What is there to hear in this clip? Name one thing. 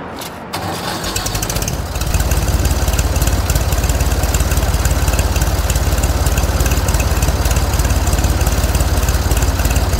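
A tractor engine chugs steadily with a rapid throb.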